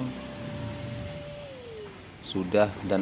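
A vacuum cleaner whines as it sucks at fabric, then winds down.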